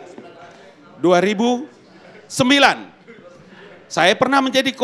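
A man calls out loudly in long, ringing phrases through a microphone in a large hall.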